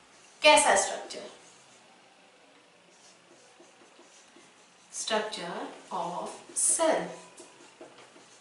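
A woman speaks in short phrases nearby.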